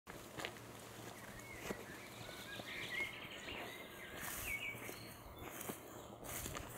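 A person's footsteps swish through tall grass.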